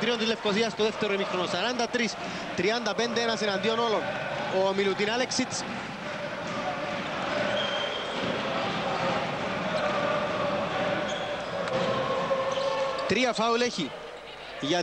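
A crowd in a large indoor arena cheers and chants steadily.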